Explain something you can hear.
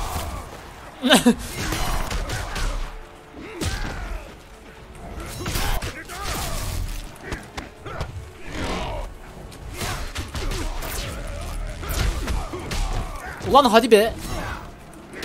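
A fighter grunts and shouts with each strike.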